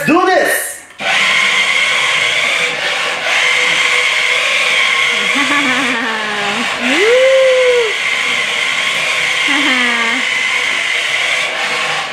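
A toy car's electric motor whines steadily as it drives across a wooden floor.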